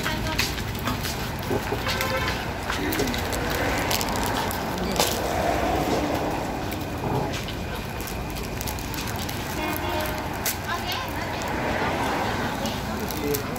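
Crisp rice cakes clatter softly as they are stacked.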